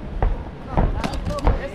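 Punches land with sharp slaps.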